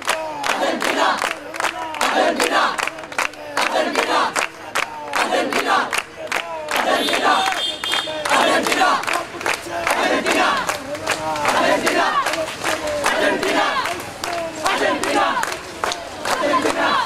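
Young men clap their hands.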